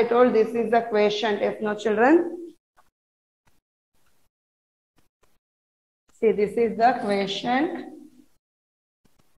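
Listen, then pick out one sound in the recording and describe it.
A woman speaks clearly and slowly, close by.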